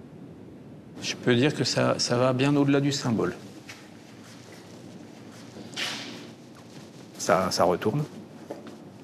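An elderly man speaks calmly nearby in a large echoing hall.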